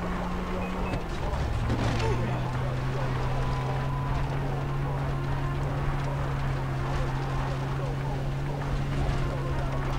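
A vehicle engine drones steadily while driving.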